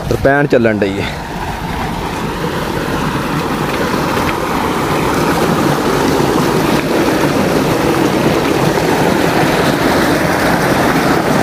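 Water gushes from a pipe and splashes loudly into a tank.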